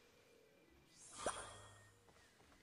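A short bright chime sounds as an item is picked up.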